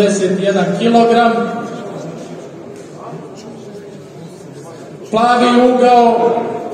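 A seated crowd murmurs softly.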